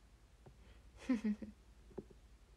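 A young woman speaks calmly into a phone microphone.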